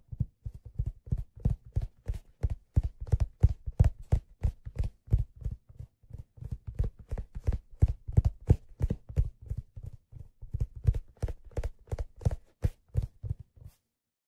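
Fingers tap rapidly on a leather object close to a microphone.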